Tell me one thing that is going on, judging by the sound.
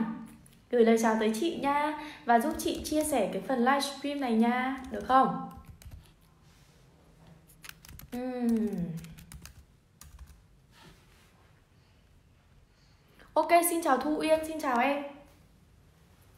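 A young woman talks animatedly and close to the microphone.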